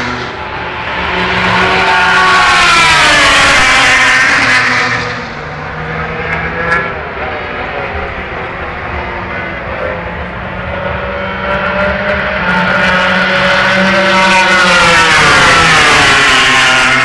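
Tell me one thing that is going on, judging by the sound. Racing car engines scream past at high speed, rising and falling in pitch.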